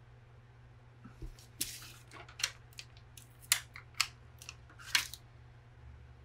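Paper crinkles and taps softly as hands press stickers down.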